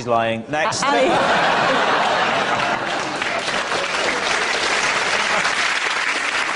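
A group of men laugh loudly and heartily.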